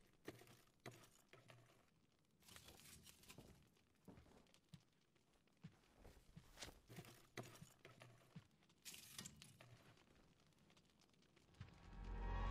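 Footsteps thud softly on a wooden floor.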